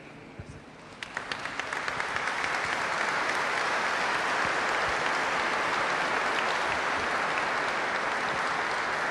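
A crowd applauds in a large echoing hall, building from scattered claps to steady applause.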